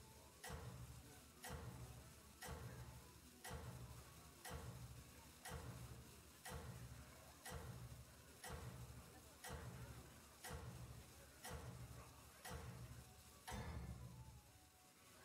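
A game countdown ticks loudly once every second.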